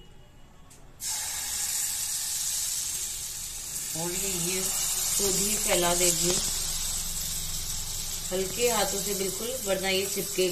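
Batter sizzles loudly on a hot pan.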